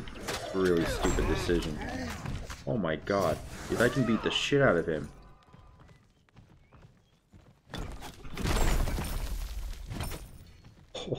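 Game sound effects burst and whoosh.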